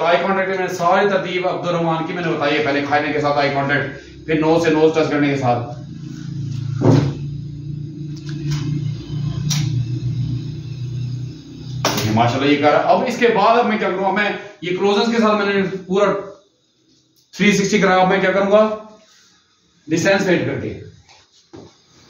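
A middle-aged man speaks loudly and with animation nearby.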